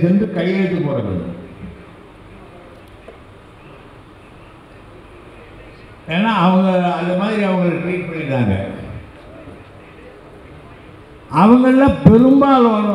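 A middle-aged man speaks forcefully into a microphone, heard through loudspeakers, with long pauses.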